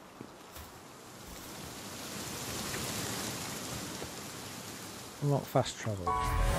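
A fire roars with a soft rushing hiss.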